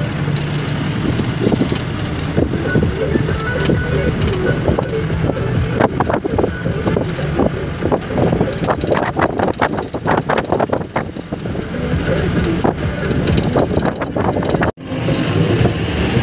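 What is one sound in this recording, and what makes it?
Wind rushes past a moving vehicle.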